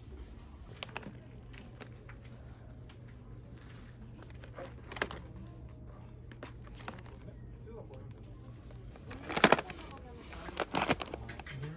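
A plastic package crinkles as a hand handles it.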